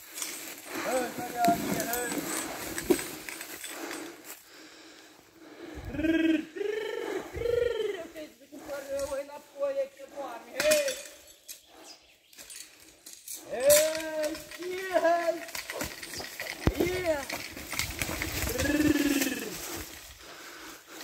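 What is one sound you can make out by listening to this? A man calls out commands to a horse.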